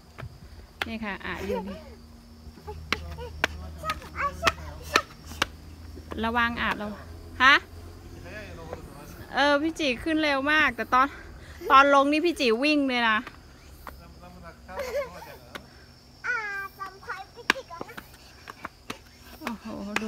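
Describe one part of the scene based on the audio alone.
A young girl chatters and squeals in a high voice close by.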